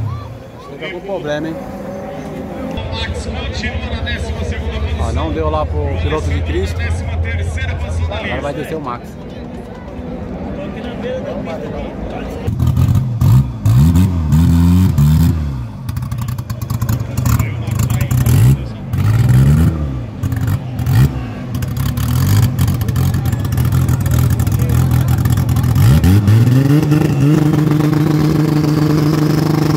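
A drag car's engine idles with a deep, rough rumble.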